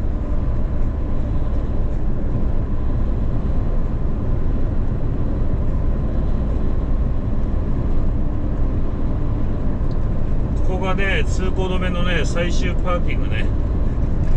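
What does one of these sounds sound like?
A truck's engine drones steadily, heard from inside the cab.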